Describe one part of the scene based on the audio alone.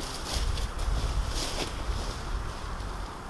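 Fabric rustles and flaps as a tarp is pulled.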